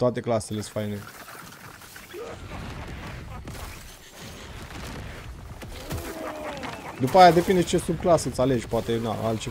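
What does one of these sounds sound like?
Game sound effects of spells and combat crackle and boom.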